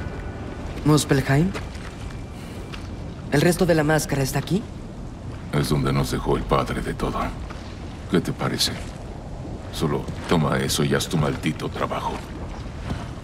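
A young man talks into a microphone.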